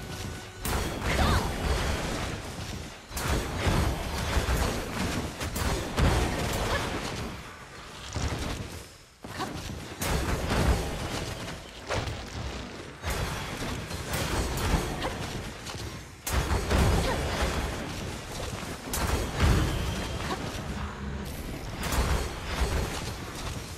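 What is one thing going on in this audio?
Magic spells burst and crackle in a fierce fight.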